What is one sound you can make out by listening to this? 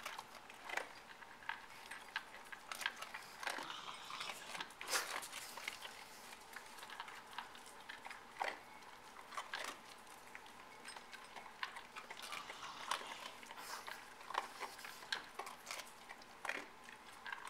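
Small terriers crunch kibble from metal bowls.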